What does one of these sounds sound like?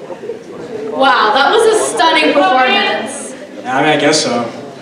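A woman sings through a microphone in a large hall.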